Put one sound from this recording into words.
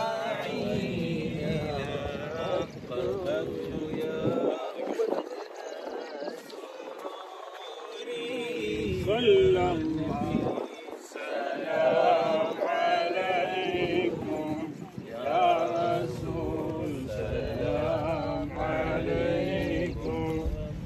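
Several men talk together nearby.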